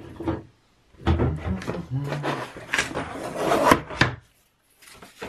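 A cardboard sheet scrapes and rustles as it is pulled across a wooden workbench.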